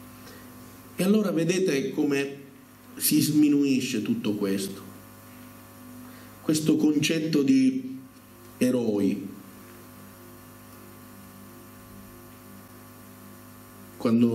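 A middle-aged man speaks through a microphone over loudspeakers in an echoing hall, in short bursts.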